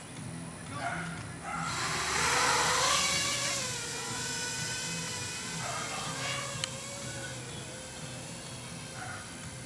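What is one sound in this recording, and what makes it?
A small drone's propellers whine loudly, rising in pitch as it takes off and speeds past.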